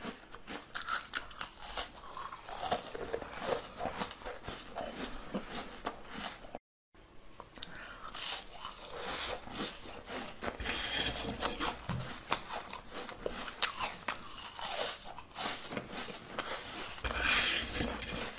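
A woman bites and crunches crisp food close to the microphone.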